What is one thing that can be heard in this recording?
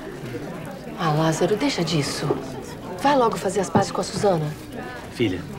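A woman speaks with feeling nearby.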